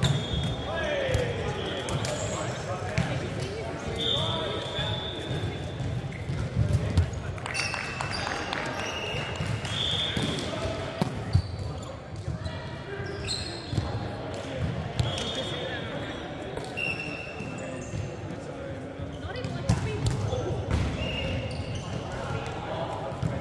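A volleyball is struck with loud slaps that echo through a large hall.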